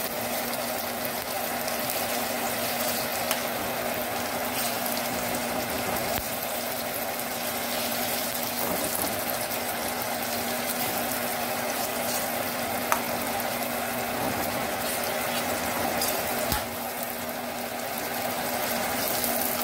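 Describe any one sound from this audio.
A spatula scrapes and knocks against a pan.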